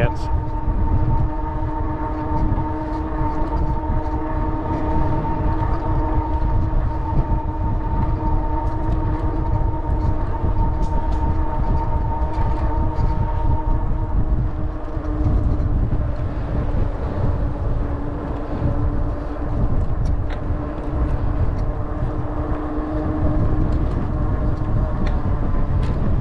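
Wind rumbles loudly against the rider.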